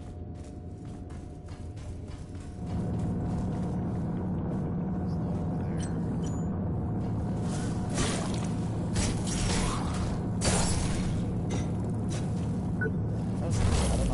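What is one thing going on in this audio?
Heavy metal footsteps clank on a steel grating.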